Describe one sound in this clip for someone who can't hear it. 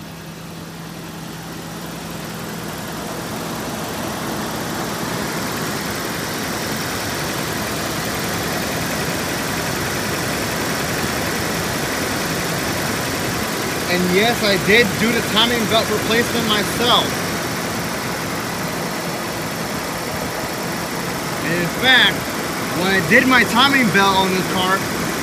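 An engine idles with a steady low hum.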